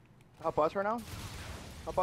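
An explosion roars in a video game.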